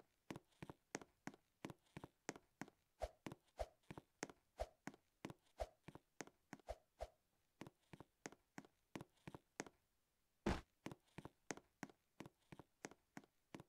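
Quick footsteps patter in a steady rhythm as a game character runs.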